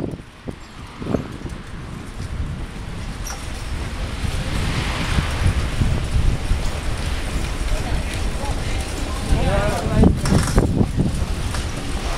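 Wind rumbles against a microphone while moving outdoors.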